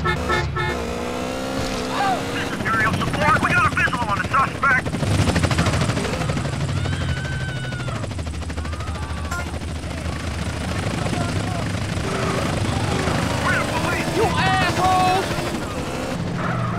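A motorcycle engine revs and hums steadily.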